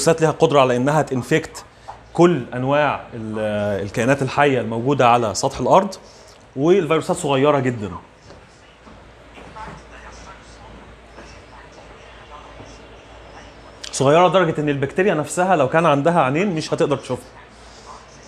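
A man lectures nearby, speaking steadily in bursts with long pauses.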